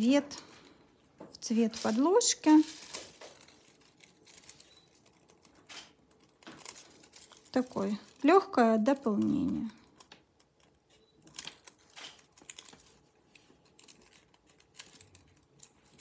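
Foil crinkles as it is folded and pulled off.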